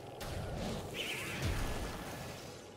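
An energy blaster fires with a sharp, booming burst.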